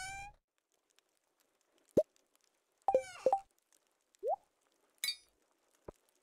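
Short game menu sounds blip and chime.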